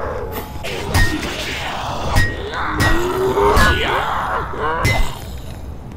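A ray gun fires sharp zapping shots.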